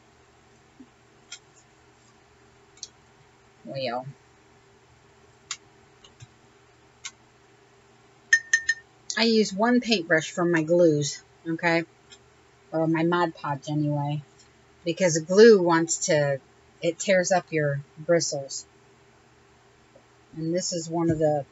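A paintbrush brushes softly across paper.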